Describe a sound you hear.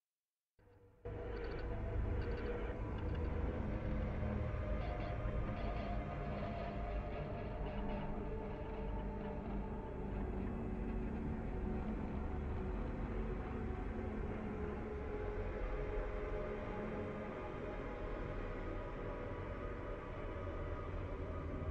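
Dark, droning game music plays.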